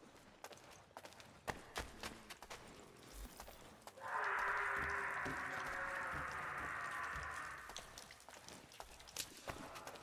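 Bare feet patter on stone while a man runs.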